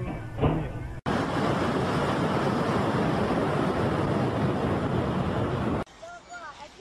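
Jet engine blast roars with strong rushing wind.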